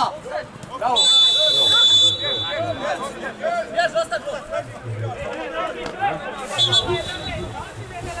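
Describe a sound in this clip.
A referee's whistle blows sharply.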